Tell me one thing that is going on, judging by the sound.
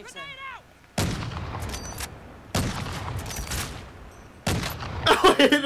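A rifle fires several loud, booming shots that ring out.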